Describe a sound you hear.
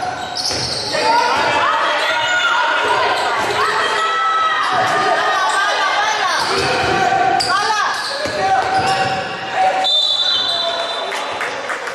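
Spectators chatter and call out in an echoing hall.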